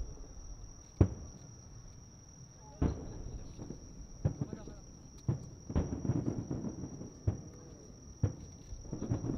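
Fireworks burst with loud booming bangs echoing in the distance.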